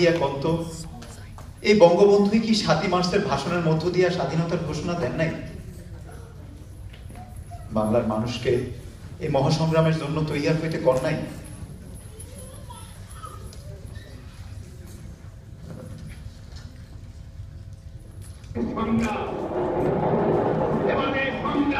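Music with a singing voice plays through a loudspeaker in a large echoing hall.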